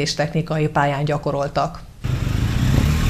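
A young woman reads out calmly through a microphone.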